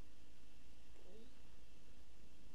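A young girl speaks briefly and softly.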